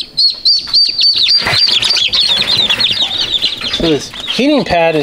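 Chicks peep rapidly and shrilly.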